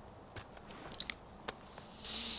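Cloth rustles as hands search through a pack.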